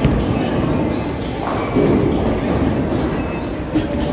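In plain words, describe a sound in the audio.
A bowling ball rolls down a lane with a low rumble.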